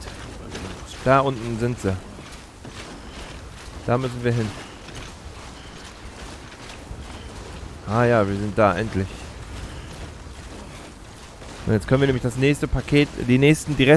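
A man speaks loudly and with animation into a close microphone.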